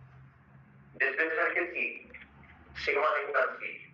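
A man speaks calmly, close to a microphone.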